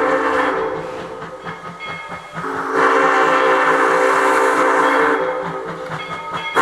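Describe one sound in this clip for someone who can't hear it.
A steam locomotive chugs steadily as it approaches.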